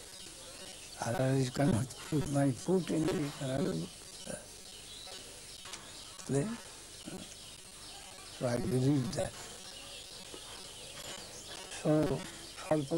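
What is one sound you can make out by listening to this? An elderly man speaks slowly and calmly, close by, in short bursts with pauses.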